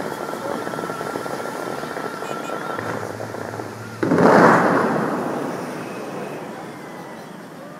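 Powerful fountain jets roar and hiss as water shoots into the air.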